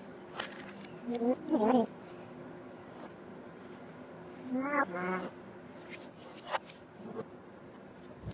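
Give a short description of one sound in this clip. Two young men laugh and exclaim with excitement close by.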